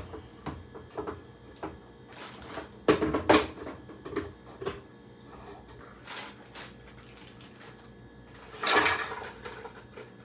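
A child shifts about and bumps against a countertop close by.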